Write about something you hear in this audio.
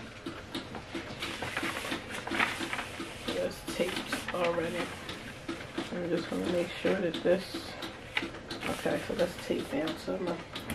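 Paper rustles and crinkles as it is handled and smoothed flat.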